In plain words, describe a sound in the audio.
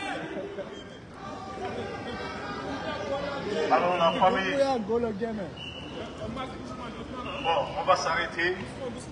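A crowd of marchers chants and talks outdoors.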